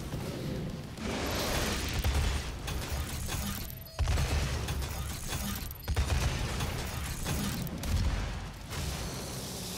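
A gun fires with loud roaring blasts.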